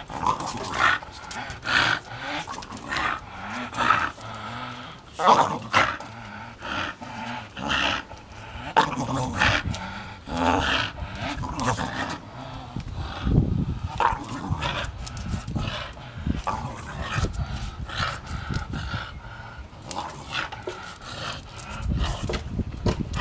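A rope creaks against a wooden post as a dog pulls on it.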